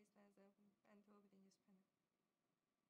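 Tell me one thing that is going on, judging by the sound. A young woman speaks calmly and warmly into a microphone.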